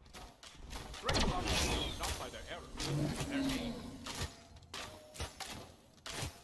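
Magic blasts and hits crackle in a fast fight.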